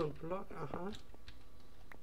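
A pickaxe chips at a block in a video game.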